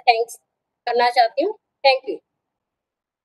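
A woman speaks briefly through an online call.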